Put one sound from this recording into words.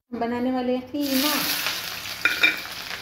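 Onions drop into hot oil and sizzle loudly.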